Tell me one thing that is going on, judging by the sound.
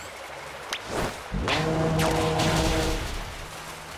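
A creature is hit with a bright burst and a chiming sound.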